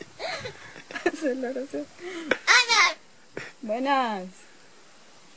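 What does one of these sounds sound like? A parrot squawks and chatters up close.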